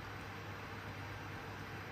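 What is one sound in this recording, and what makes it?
Liquid pours gently into a spoon.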